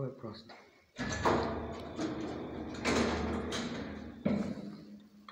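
Sliding elevator doors rumble shut.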